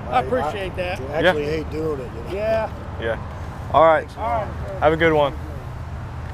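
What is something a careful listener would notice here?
A man talks close by in a lively voice.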